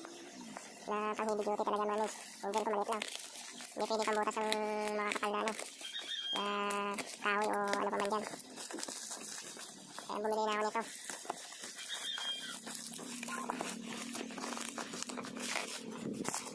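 Plastic bubble wrap crinkles and rustles under fingers.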